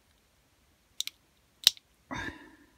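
Small metal parts click sharply against each other.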